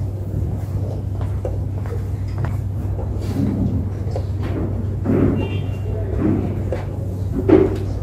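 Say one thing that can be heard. A chess piece is set down on a wooden board with a light tap.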